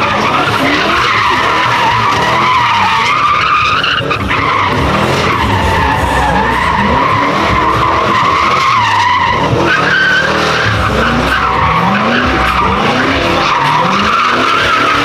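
Tyres squeal loudly on pavement.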